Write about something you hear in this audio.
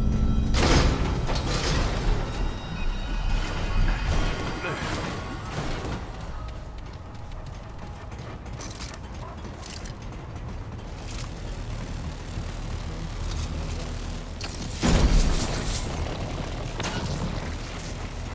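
Footsteps clank on metal flooring.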